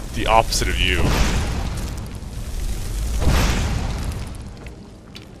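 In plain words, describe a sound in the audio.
A fire spell roars and crackles in bursts.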